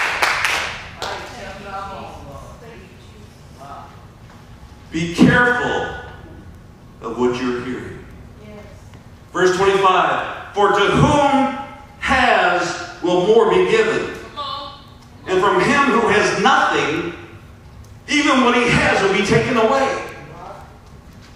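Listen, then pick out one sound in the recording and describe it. A man preaches into a microphone with animation, heard through loudspeakers in a large room.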